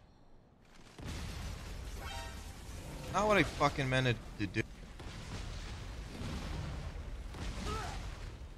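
Explosions boom and rumble loudly.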